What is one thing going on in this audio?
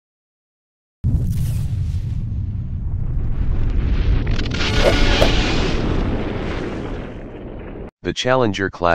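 A huge explosion booms and rumbles, then fades away.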